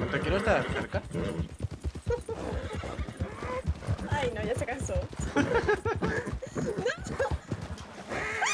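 Horse hooves pound on a dirt trail at a gallop.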